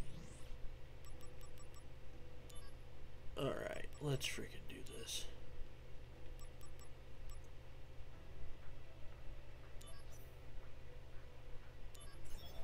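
Short electronic menu beeps tick as a selection moves.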